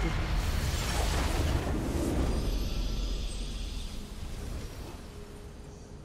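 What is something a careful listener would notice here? A triumphant game victory sound swells up and slowly fades away.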